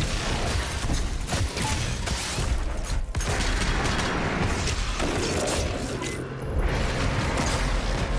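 Monsters roar and growl up close.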